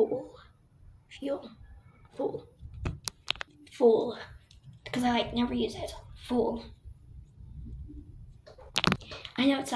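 A girl talks calmly, close by.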